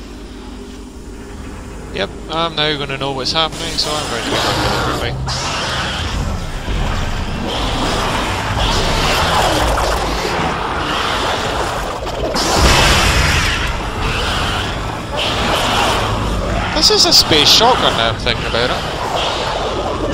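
Jet thrusters roar and hiss steadily.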